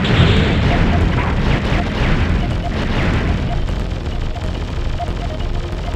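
Laser blasts fire rapidly.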